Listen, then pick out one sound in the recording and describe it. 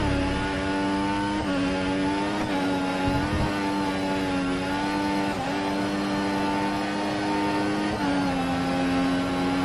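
A racing car engine screams at high revs, dropping briefly with each gear shift.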